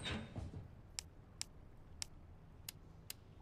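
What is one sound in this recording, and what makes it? Short soft beeps tick one after another.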